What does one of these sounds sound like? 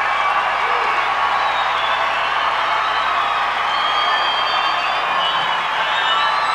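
A large crowd cheers and screams loudly in a vast open stadium.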